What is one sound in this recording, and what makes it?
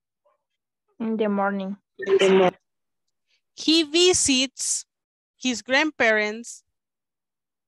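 A woman speaks clearly in short phrases over an online call.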